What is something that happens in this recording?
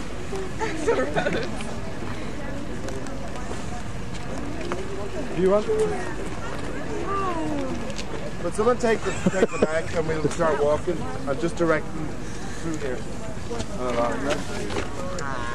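Young women chatter and laugh nearby.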